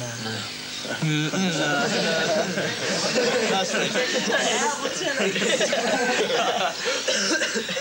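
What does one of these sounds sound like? Several young men laugh and chatter noisily.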